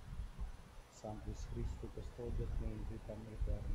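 A man speaks slowly and solemnly into a microphone in a large echoing church.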